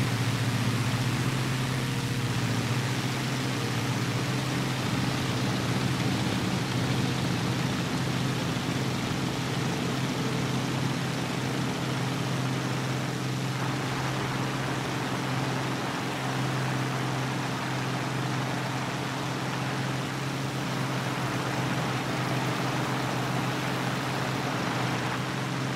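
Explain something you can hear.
A propeller aircraft engine drones loudly and steadily.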